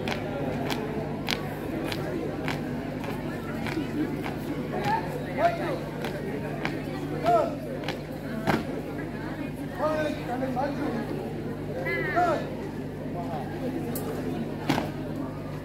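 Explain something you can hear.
A marching troupe stamps their feet in time on hard ground.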